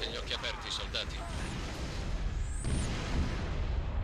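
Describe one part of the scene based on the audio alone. An energy blast bursts with a crackling roar.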